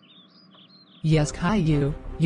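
A woman answers in an annoyed voice.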